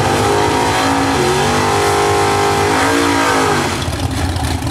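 A drag racing engine revs up sharply in bursts.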